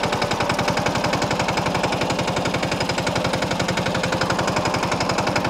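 A small tractor diesel engine chugs steadily close by.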